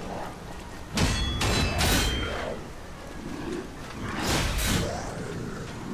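Weapons clash with heavy metallic impacts.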